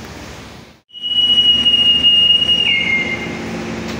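A whistle blows a long, shrill note close by.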